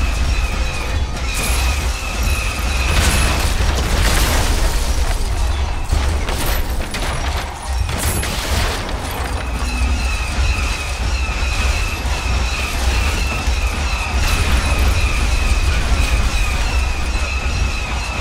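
A two-legged mechanical walker stomps and clanks in a video game.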